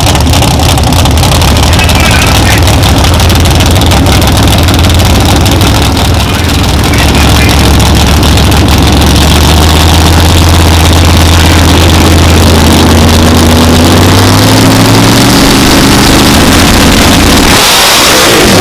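A drag racing engine idles with a loud, deep, lumpy rumble.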